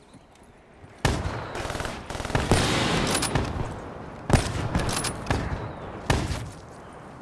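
A sniper rifle fires sharp shots in a video game.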